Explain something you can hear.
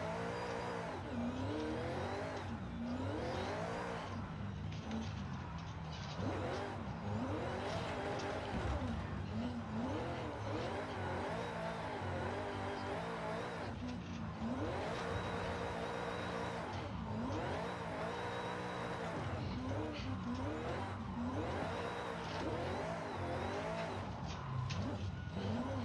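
A car engine revs up and down, rising in pitch and dropping sharply between gear changes.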